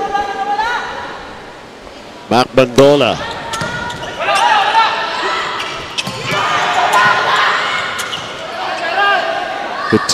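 A volleyball is smacked hard during a rally.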